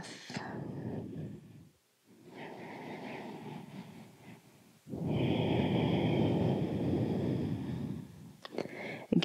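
A woman breathes deeply in and out.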